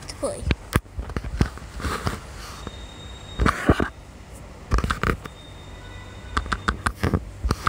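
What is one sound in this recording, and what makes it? Short game sound effects pop and click.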